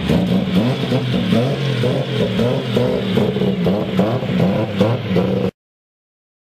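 A car engine idles with a rough, throaty rumble.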